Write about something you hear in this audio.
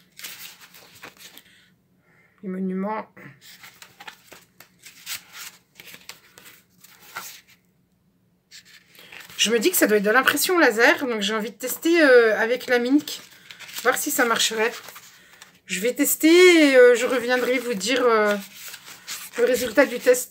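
Sheets of paper rustle as they are waved about.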